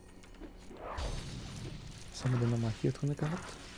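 An explosion bursts with a loud rumbling blast.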